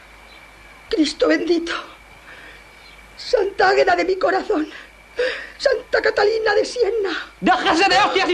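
An elderly woman speaks in a frightened, trembling voice.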